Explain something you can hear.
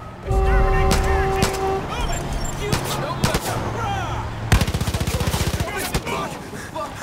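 Rapid gunshots ring out close by.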